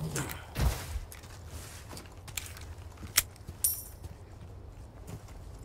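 Footsteps crunch slowly on dirt.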